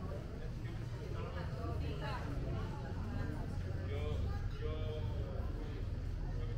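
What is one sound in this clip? Men and women chat in a small crowd nearby.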